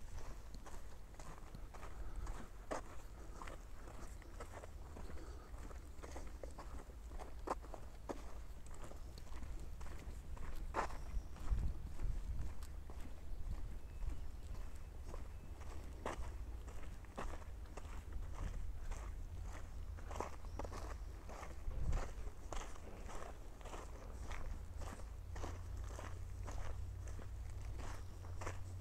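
Tyres crunch and rattle over a dirt trail.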